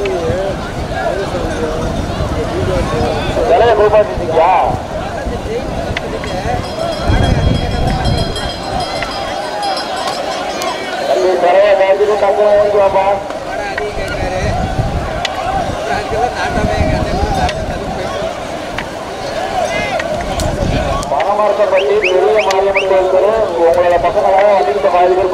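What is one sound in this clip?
Water splashes around many wading feet.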